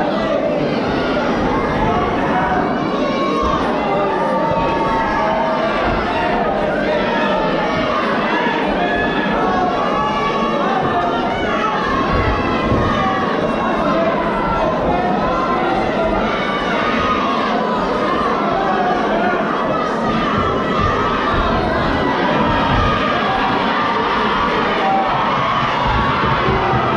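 A crowd chatters and calls out in a large hall.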